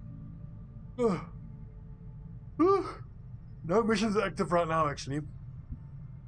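A man yawns and groans loudly into a microphone, close by.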